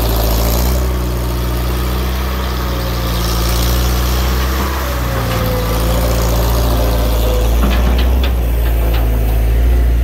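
Gravel rattles and scrapes as a loader bucket digs and dumps it.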